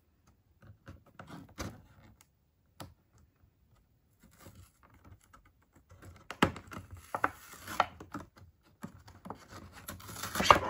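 Fingers tap and scrape against plastic toy packaging.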